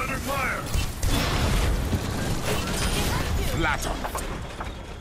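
A weapon fires in rapid bursts with zapping electric sounds.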